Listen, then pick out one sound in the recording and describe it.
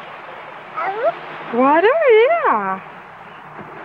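A toddler squeals in a high, wavering voice close by.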